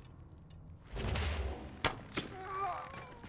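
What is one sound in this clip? An arrow strikes a body with a heavy thud.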